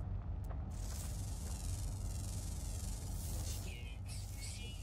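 An electronic scanner hums with a wavering high whine.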